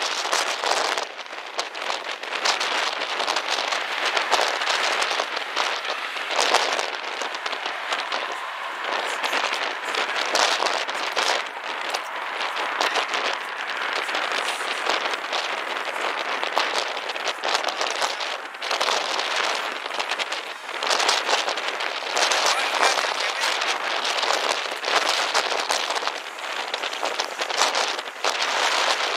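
A propeller plane's engines drone steadily as it taxis.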